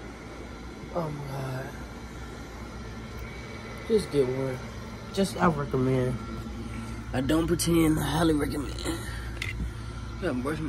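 An adult man talks close to the microphone.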